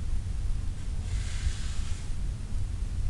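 Stiff paper pages rustle as a book is handled and turned.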